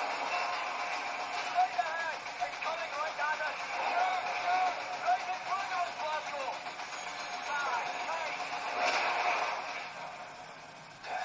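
Gunfire and explosions from a video game play through a small built-in speaker.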